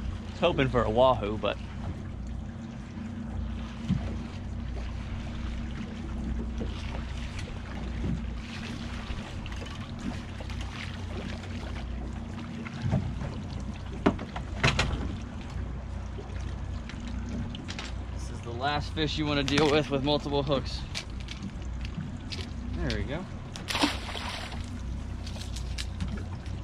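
A boat engine idles steadily.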